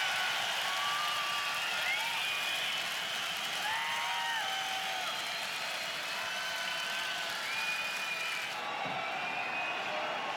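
A large crowd whistles shrilly.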